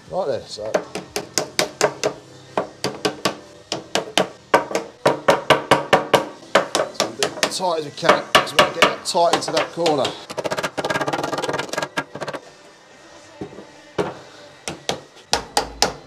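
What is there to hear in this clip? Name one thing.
A mallet knocks rapidly against a metal sheet.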